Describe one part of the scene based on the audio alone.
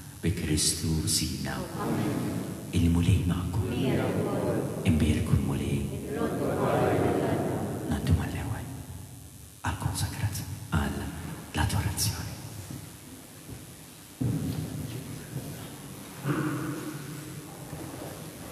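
An elderly man speaks calmly into a microphone, his voice echoing in a large hall.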